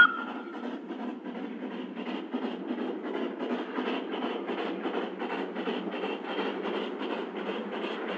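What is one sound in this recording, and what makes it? A steam locomotive chuffs closer and louder as it approaches.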